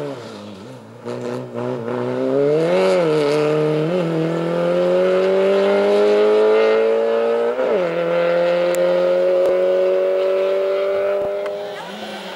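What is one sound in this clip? A rally car engine revs hard as it approaches and races past close by, shifting gears.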